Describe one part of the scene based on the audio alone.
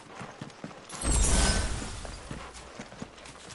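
A sparkling magical burst rings out loudly.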